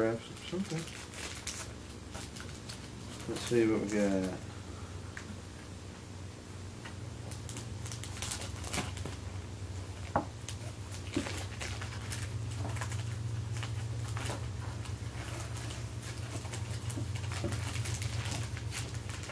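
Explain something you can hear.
Plastic wrappers crinkle and rustle as packs are torn open.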